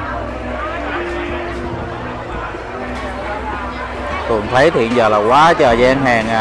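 A crowd chatters all around.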